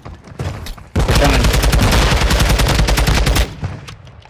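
An assault rifle fires a rapid automatic burst.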